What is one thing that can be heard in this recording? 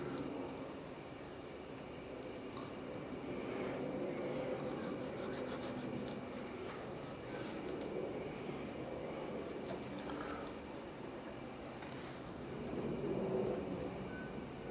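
A small tool scratches lightly on leather.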